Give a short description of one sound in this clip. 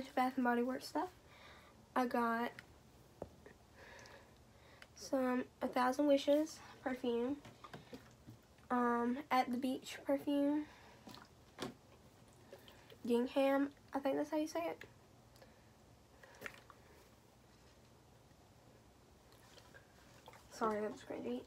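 A girl talks calmly and close by, in short bursts with pauses.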